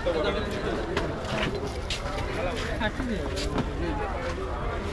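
Ceramic items clink as they are handled.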